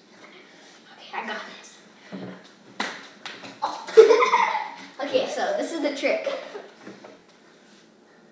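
A young boy shouts and laughs excitedly close by.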